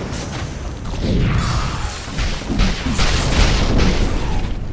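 Weapons clash and strike in quick succession.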